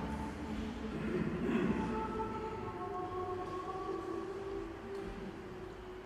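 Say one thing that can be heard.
A mixed choir sings together in a large echoing hall.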